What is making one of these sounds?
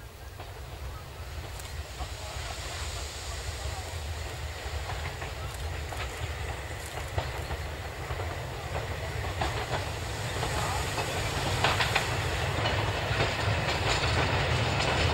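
Train wheels clatter on the rails.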